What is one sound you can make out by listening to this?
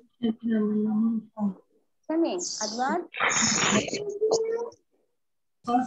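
A child speaks with animation through an online call.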